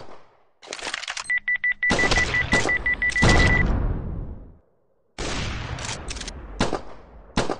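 Cartoonish gunshots pop in quick bursts.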